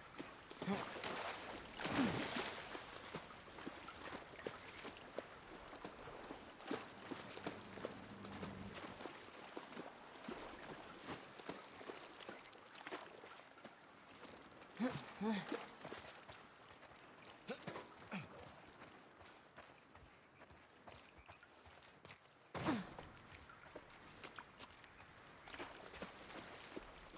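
Footsteps crunch softly over debris and rubble.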